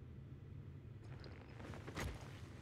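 A young woman speaks briefly into a close microphone.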